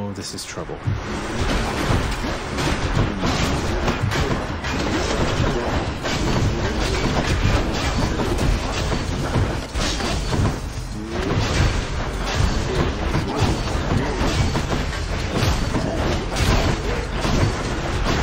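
Blades slash and strike in quick bursts of combat.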